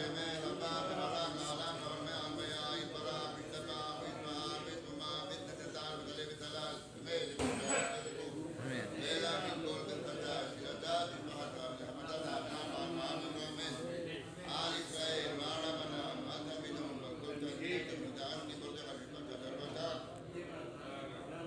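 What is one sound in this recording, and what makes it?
A man chants aloud through a microphone.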